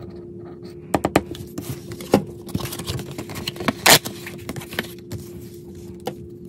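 Cards rustle and crinkle as they are handled.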